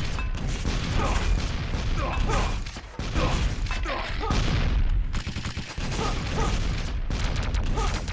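Short whooshing blasts fly through the air.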